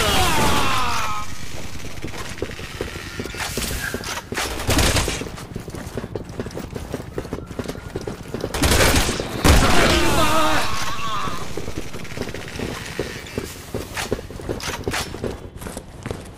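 Footsteps clang on metal stairs.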